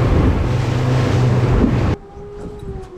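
A boat engine roars as the hull speeds over the waves.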